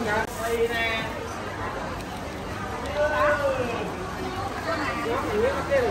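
A plastic bag rustles close by.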